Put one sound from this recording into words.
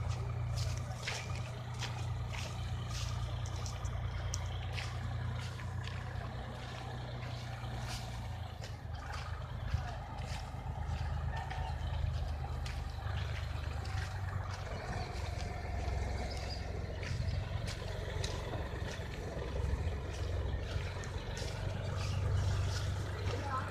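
A combine harvester engine rumbles steadily nearby.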